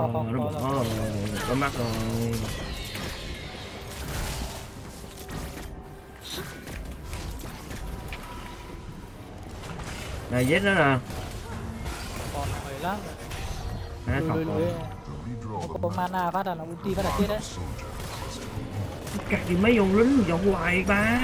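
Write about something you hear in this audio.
Fantasy combat sound effects whoosh and clash.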